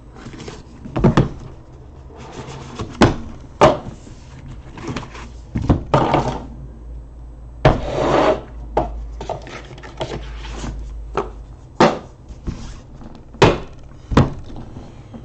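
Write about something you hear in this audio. Cardboard boxes knock and tap on a table.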